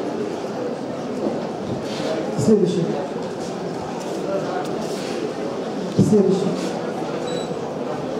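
An older woman speaks calmly in an echoing hall.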